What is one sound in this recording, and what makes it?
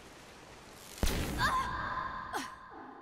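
A heavy blow strikes with a sharp thud.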